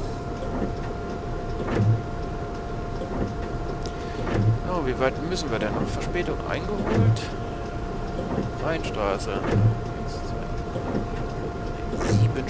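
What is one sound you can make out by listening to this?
Rain patters steadily on a windscreen.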